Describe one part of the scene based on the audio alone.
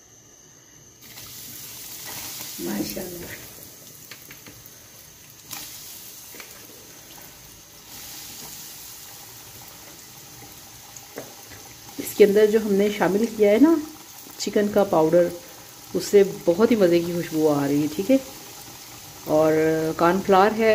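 Hot oil sizzles and crackles steadily as potato strips fry.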